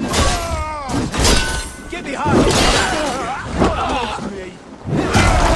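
Blades clash and thud in a close fight.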